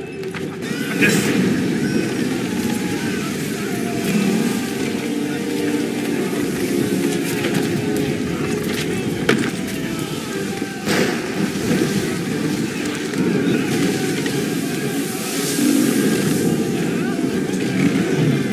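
Stormy wind roars steadily outdoors.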